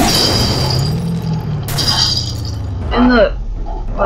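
Metal crunches and scrapes as a truck tumbles onto the ground.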